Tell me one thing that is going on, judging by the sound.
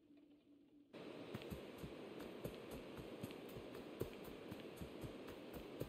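Footsteps pad quickly through grass and leaves.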